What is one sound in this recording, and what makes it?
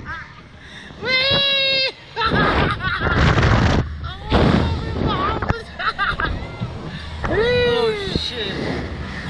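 A boy screams close by.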